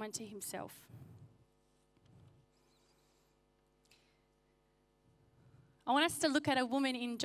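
A young woman speaks into a microphone over loudspeakers in a large hall, pausing between phrases.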